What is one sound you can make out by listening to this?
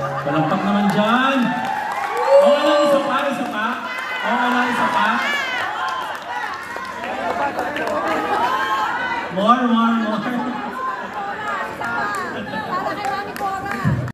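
A woman sings through loudspeakers in a large echoing hall.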